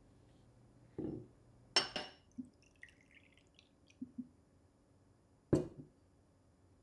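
A glass bottle knocks against a wooden table.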